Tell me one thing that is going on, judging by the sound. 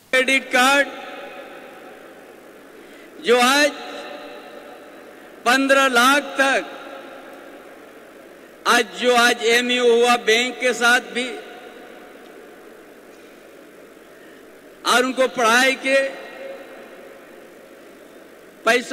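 An elderly man gives a speech in bursts through a microphone and loudspeakers, with pauses and a slight echo.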